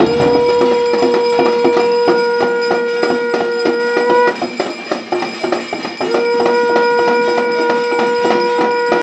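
A metal plate is beaten with a fast, steady rhythm.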